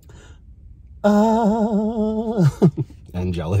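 A man hums with pleasure while eating.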